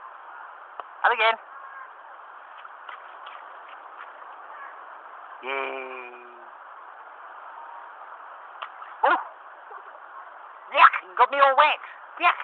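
A small child babbles and squeals close by.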